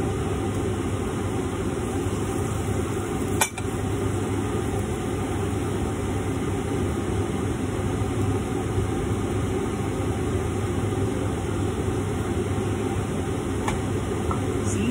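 Food sizzles steadily in hot frying pans.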